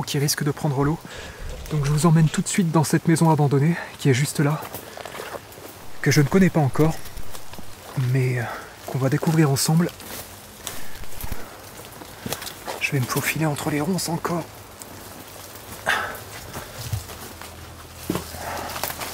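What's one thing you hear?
Leaves and branches rustle as someone moves through brush.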